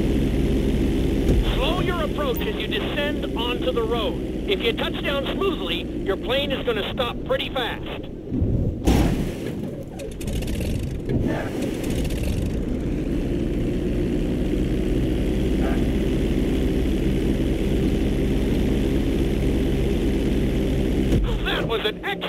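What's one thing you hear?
A propeller plane's engine drones steadily and then winds down.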